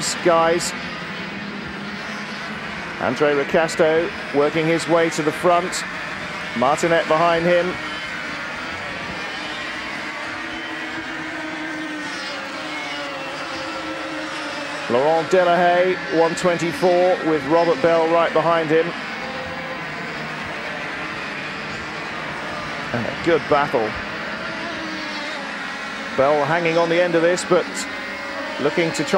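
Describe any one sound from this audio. Kart engines whine and buzz as karts race past.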